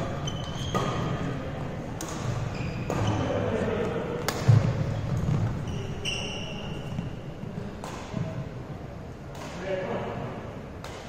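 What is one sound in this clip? Sneakers squeak on the hard floor.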